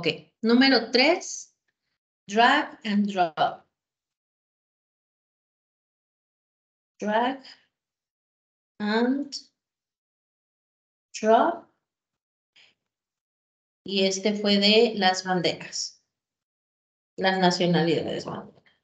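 A young woman speaks calmly in short bursts through an online call.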